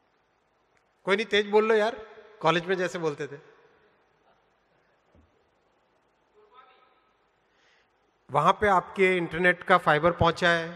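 A man speaks from an audience in a large hall.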